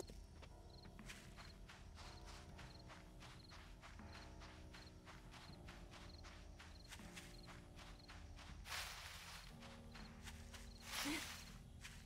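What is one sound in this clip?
Footsteps crunch on dry ground.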